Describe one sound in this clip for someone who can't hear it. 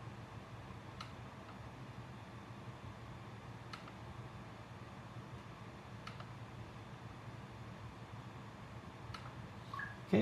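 Buttons on a handheld controller click now and then.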